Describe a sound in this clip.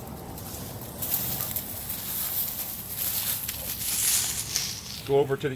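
Leafy branches rustle and swish as they are pulled aside.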